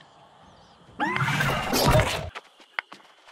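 A magic spell bursts with a bright shimmering whoosh.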